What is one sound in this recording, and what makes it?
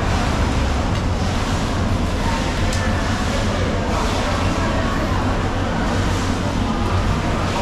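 A knife scrapes and cuts through a large fish.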